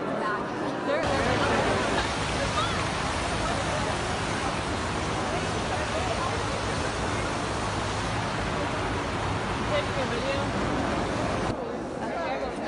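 A fountain splashes outdoors.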